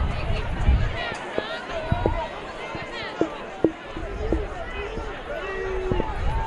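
A crowd murmurs and cheers in the distance, outdoors.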